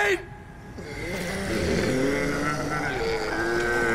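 Zombies groan and moan close by.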